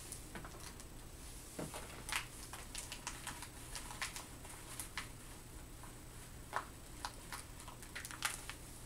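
Small objects click and rattle close by.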